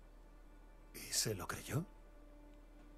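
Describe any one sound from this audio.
A man asks a short question in a low voice.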